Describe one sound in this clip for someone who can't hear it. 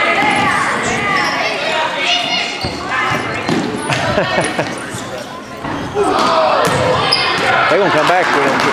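Children's voices shout and chatter in a large echoing gym.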